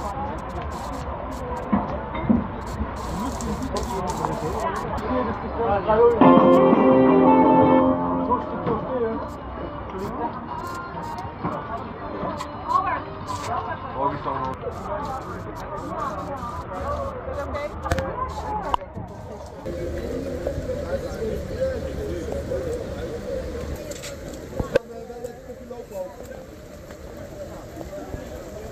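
Rain patters on umbrellas and wet pavement.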